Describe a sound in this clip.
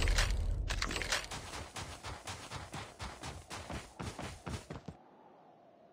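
Footsteps run quickly over crunchy ground.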